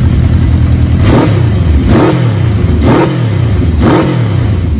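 An inline-four motorcycle engine is revved in short blips.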